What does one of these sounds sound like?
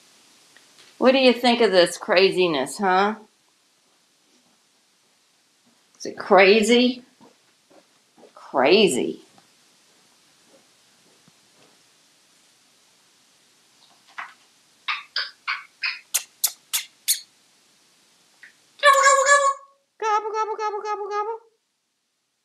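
A parrot squawks and chatters loudly nearby.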